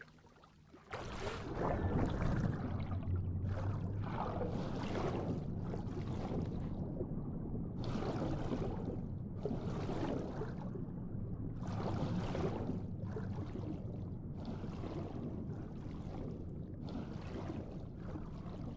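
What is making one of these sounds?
Water gurgles and swirls with each stroke of a swimmer underwater.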